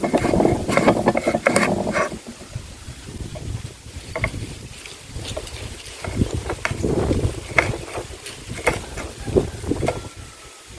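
A knife slices through firm vegetable onto a wooden board with crisp chopping knocks.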